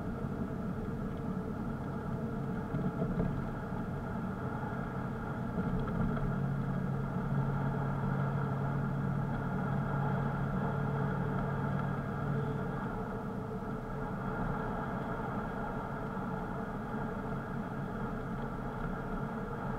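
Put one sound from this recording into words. A car engine hums steadily while driving along a road.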